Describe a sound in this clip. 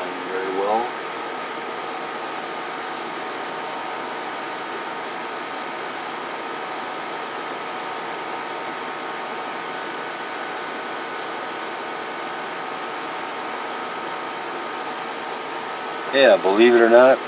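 A radio speaker gives out a loud warbling tone.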